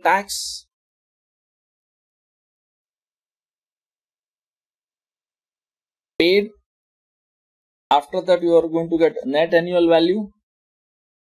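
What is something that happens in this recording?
A man speaks calmly and closely into a microphone, in short bursts with long pauses.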